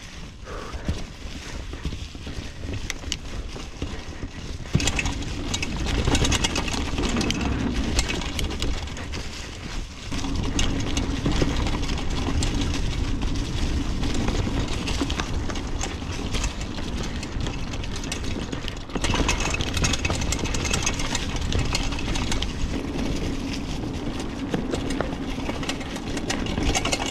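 Bicycle tyres roll and crunch over dry leaves on a bumpy trail.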